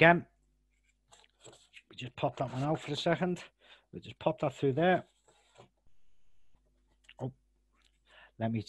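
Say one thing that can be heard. Cardboard parts tap and scrape softly as they are handled.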